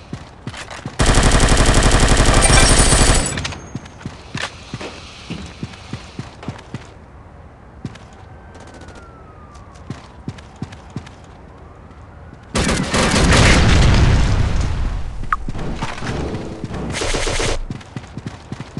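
Rapid automatic gunfire rattles loudly in bursts.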